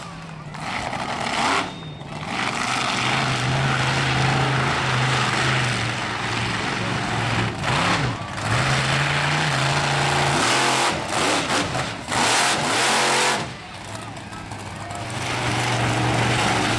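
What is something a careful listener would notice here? A monster truck engine roars loudly and revs up and down.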